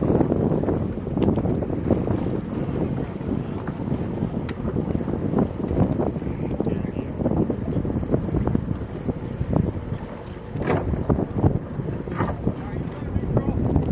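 Water splashes as swimmers move alongside an inflatable boat.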